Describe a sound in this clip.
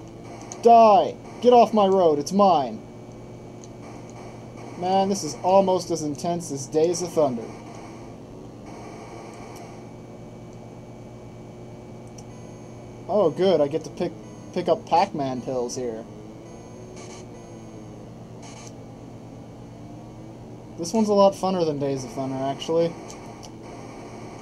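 A retro game car engine drones steadily.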